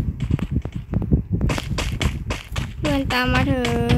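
Footsteps patter over grass.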